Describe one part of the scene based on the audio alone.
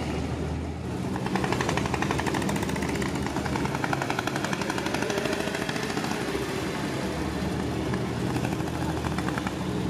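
Small motorcycles buzz past.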